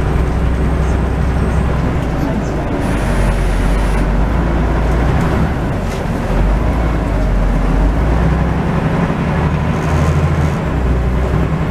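A bus engine rumbles steadily while driving.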